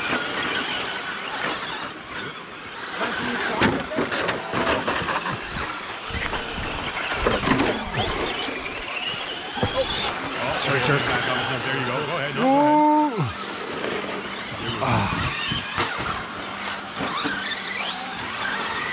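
Tyres of small cars scrabble and skid on loose dirt.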